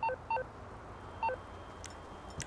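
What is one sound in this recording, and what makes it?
A phone beeps a few short tones.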